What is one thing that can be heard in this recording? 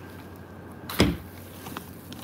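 A plastic bin lid thuds shut.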